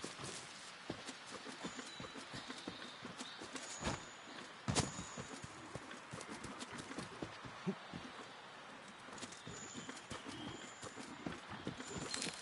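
Leaves and vines rustle and creak as someone climbs through them.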